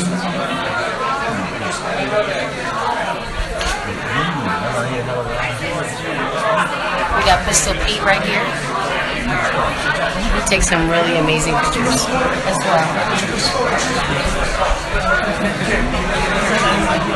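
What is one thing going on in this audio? Several men talk loudly over one another close by.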